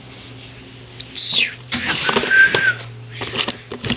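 A plastic drawer slides open with a scrape.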